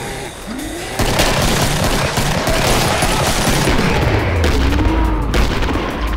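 A pistol fires rapidly.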